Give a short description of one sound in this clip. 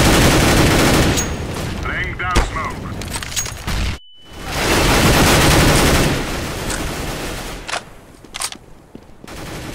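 Gunshots crack in quick bursts.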